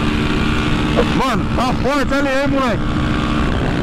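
Another motorcycle engine roars close by as it passes.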